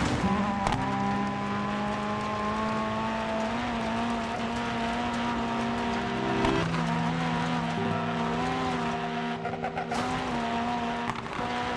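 A rally car engine roars steadily at high revs.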